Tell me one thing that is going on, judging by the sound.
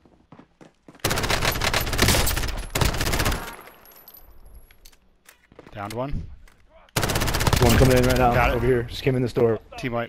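A rifle fires in rapid bursts.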